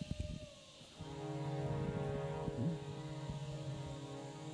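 A keyboard plays steady chords.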